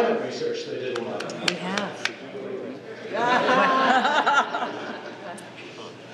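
An elderly man speaks calmly into a microphone, heard through loudspeakers in a large echoing hall.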